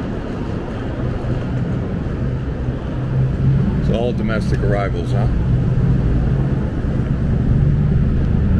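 A vehicle engine idles nearby with a low drone.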